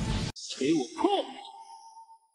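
A young man shouts forcefully.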